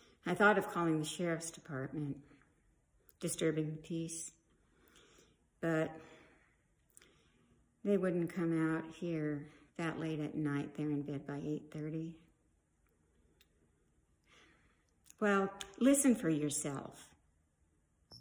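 A middle-aged woman speaks calmly and close up, with pauses, then exclaims with animation.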